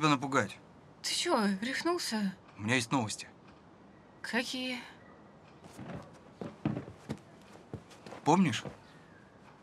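A young woman answers in a startled voice at close range.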